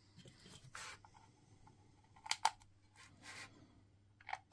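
Hands rub and shuffle a battery pack.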